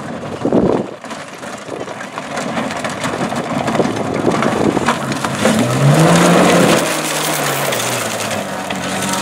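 A rally car's engine roars as it speeds past close by.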